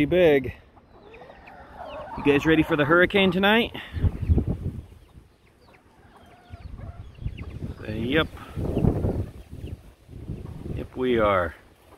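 Chickens cluck and squawk loudly close by.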